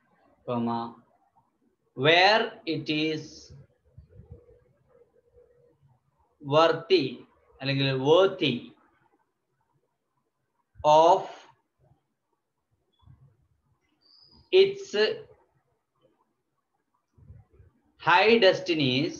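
A man speaks calmly and slowly close to a microphone, with pauses.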